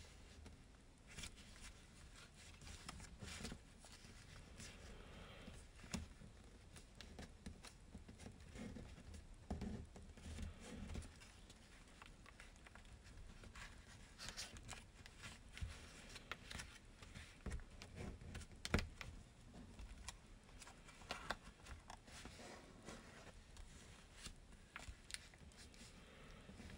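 Fingers tap and press on paper against a hard surface.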